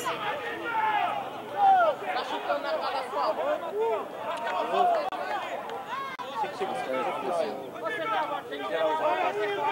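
Young men shout and call out to each other at a distance across an open field.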